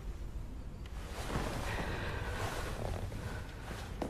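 A young woman speaks quietly and tensely nearby.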